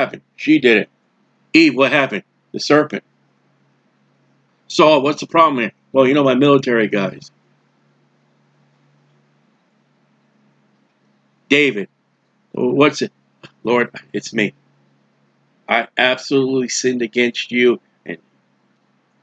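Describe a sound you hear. A middle-aged man talks with animation into a close microphone, pausing now and then.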